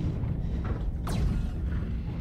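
Laser guns fire in sharp bursts.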